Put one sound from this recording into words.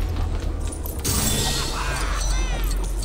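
A bright, sparkling chime rings out.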